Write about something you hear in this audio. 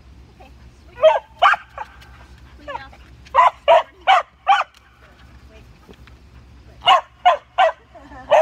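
A dog barks sharply in short bursts outdoors.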